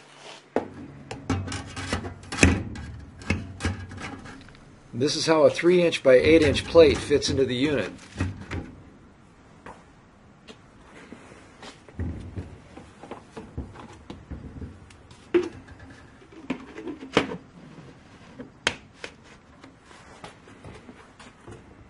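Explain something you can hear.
Plastic parts knock and click as they are handled.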